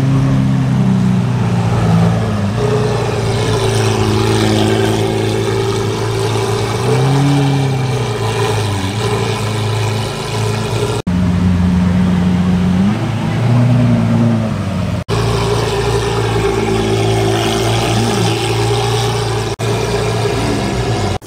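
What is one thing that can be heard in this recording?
A sports car engine idles with a deep, throaty rumble.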